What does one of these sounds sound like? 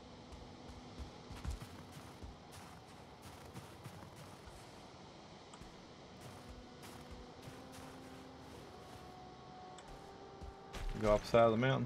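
Footsteps crunch softly through snow.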